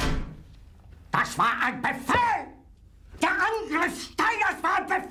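An older man shouts furiously close by.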